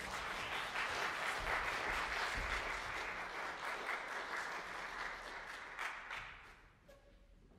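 An audience applauds in a large echoing hall, then the applause dies away.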